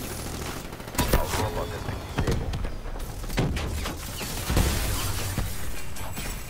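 Gunshots and explosions from a video game ring out in sharp bursts.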